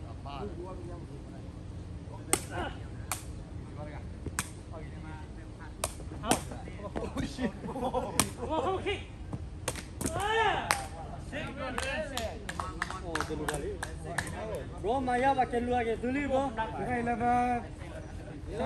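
Men shout and call out outdoors with animation.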